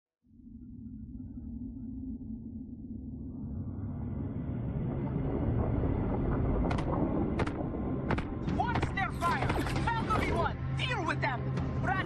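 A large spaceship engine rumbles deeply and steadily, growing louder.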